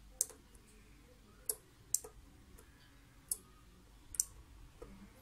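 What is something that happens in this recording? Sharp little clicks sound as wires are handled and pressed into a small board.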